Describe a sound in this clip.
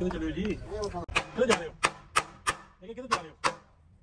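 A hammer taps sharply on metal.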